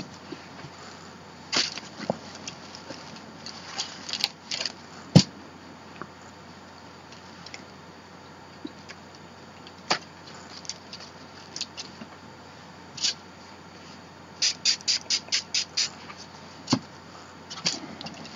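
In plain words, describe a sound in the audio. Hands rustle and tap stiff paper and a thin plastic sheet close by.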